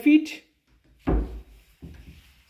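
A cupboard door thumps shut.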